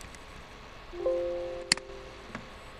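A computer alert chime sounds once.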